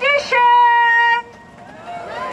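A young woman sings a long, held note through a microphone.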